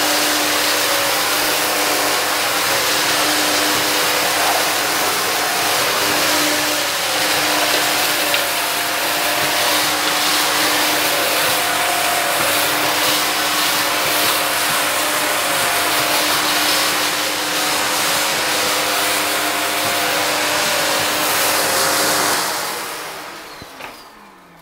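A vacuum cleaner motor whirs loudly and steadily, then winds down.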